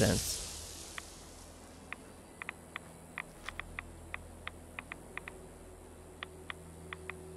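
A radiation counter clicks irregularly.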